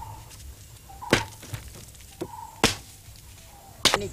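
A dry stick snaps and cracks.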